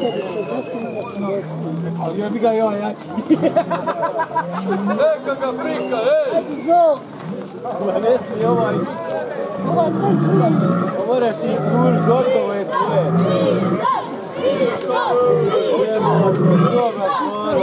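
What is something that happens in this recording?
A crowd of men and women chatter and call out loudly outdoors.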